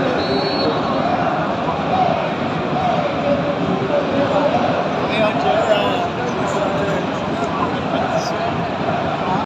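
A large stadium crowd sings and chants loudly all around, echoing through the stands.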